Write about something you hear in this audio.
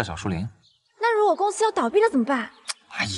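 A young woman speaks with a worried tone nearby.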